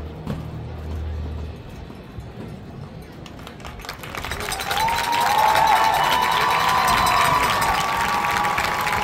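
Drums tap and click in a quick rhythm.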